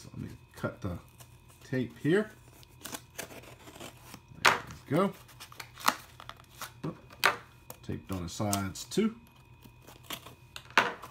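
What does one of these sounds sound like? Hands handle a cardboard box, which rustles and taps softly.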